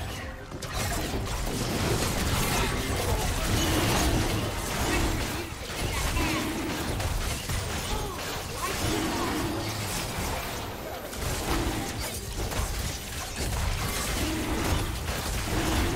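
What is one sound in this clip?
A dragon creature roars and snarls.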